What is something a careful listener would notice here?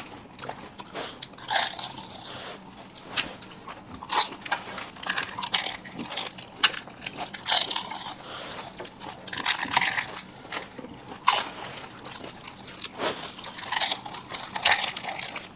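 Someone chews and slurps wet food noisily, close to a microphone.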